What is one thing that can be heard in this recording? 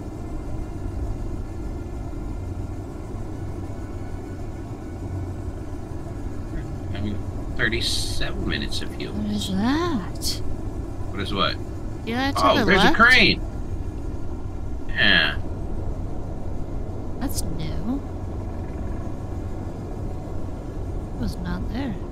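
A flying craft's engine hums steadily.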